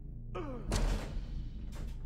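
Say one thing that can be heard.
A metal lever clanks as it is pulled down.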